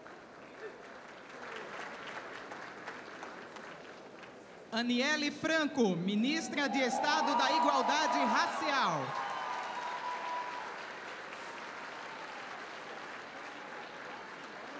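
People applaud in a large hall.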